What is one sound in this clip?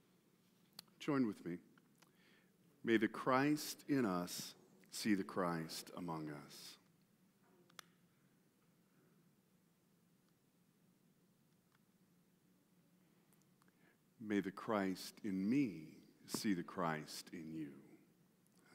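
A middle-aged man speaks calmly and slowly through a microphone in a reverberant hall.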